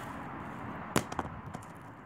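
A hollow plastic ring lands with a thud on pavement.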